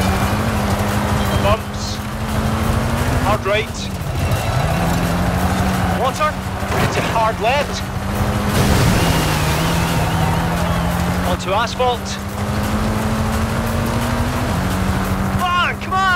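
A rally car engine roars steadily at high revs.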